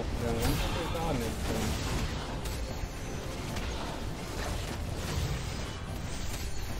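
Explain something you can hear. Fantasy battle effects clash and crackle with magic blasts and hits.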